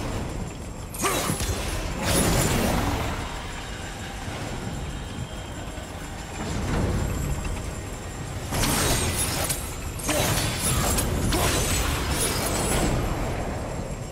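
A burst of magical energy crackles and whooshes loudly.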